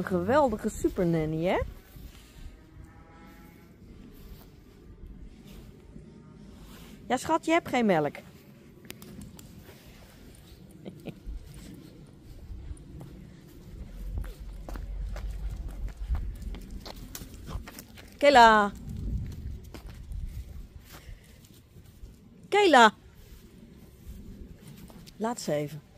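Rough collie puppies yelp shrilly while play-fighting.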